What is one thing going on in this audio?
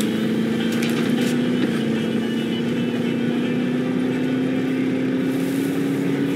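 A vehicle engine hums steadily and slowly rises in pitch as it drives over grass.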